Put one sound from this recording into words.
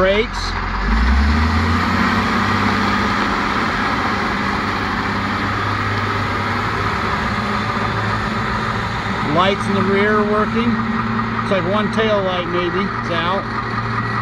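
A wheel loader's engine revs as the machine drives away.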